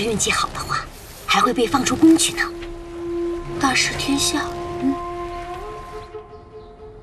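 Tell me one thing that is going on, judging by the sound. A woman speaks softly.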